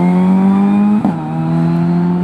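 A rally car engine briefly dips in pitch as it shifts gear.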